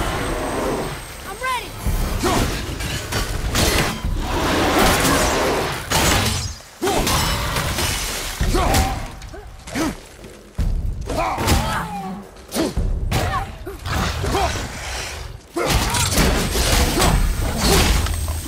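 Heavy blows and impacts thud during a fight.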